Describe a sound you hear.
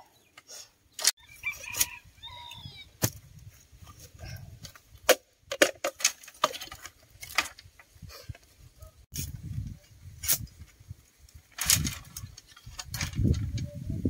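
Bamboo poles knock and clatter against each other.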